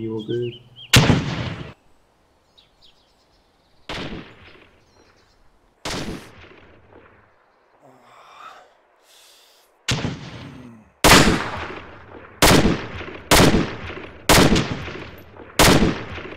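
Rifle shots crack loudly, one after another, with echoing tails.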